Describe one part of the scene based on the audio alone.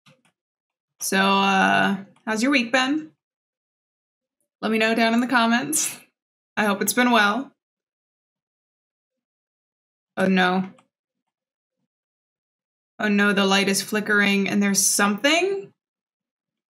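A young woman talks calmly into a close microphone, in short bursts.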